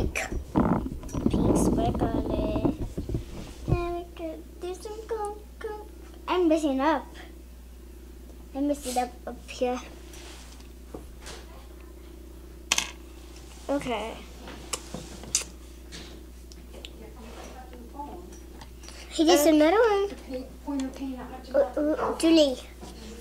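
A young girl talks and giggles close by.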